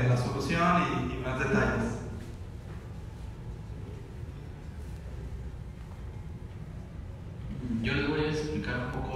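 A young man speaks into a microphone over loudspeakers in a large echoing hall.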